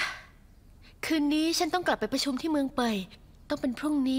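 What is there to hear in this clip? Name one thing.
A young woman speaks nearby in a lively voice.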